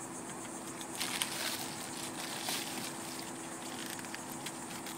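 A foil sunshade crinkles and rustles as it is handled.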